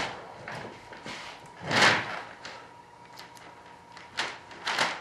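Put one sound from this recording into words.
Plastic film crinkles and rustles as hands work it.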